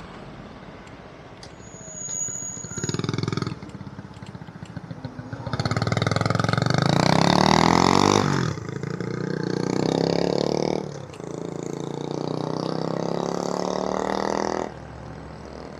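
A scooter engine buzzes close ahead and revs as it pulls away.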